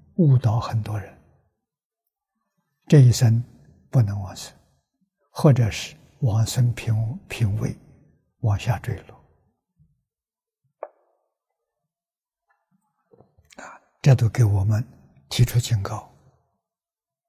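An elderly man speaks calmly and slowly, in short phrases with pauses, close to a microphone.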